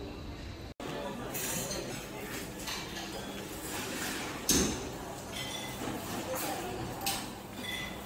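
People murmur and chat indistinctly in the background.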